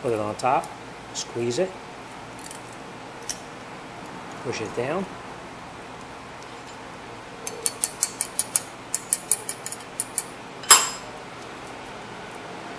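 Metal parts clink and rattle.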